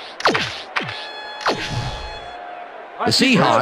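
Short electronic chimes sound as menu choices are made.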